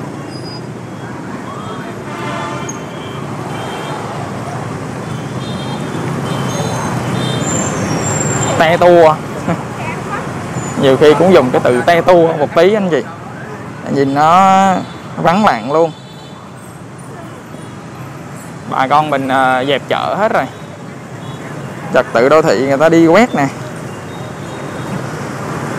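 Motorbike engines hum and buzz as they pass along a busy street.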